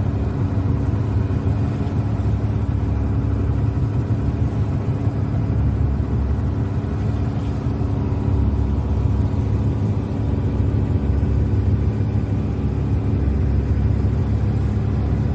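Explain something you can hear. A boat engine hums steadily up close.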